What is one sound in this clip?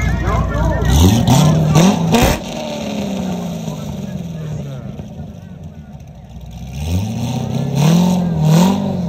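A sports car engine revs loudly and roars.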